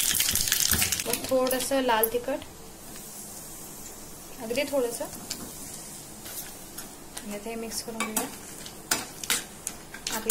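A metal spoon clinks and scrapes against a pan.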